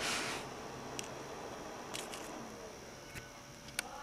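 A small plastic memory card clicks softly into an adapter.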